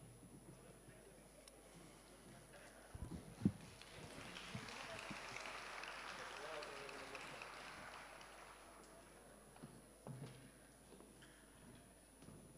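A woman speaks through a microphone and loudspeakers in a large hall.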